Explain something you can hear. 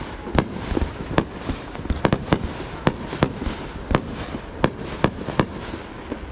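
Fireworks burst with sharp bangs and crackles overhead.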